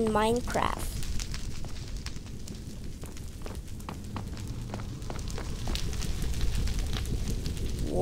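A fiery creature crackles and breathes.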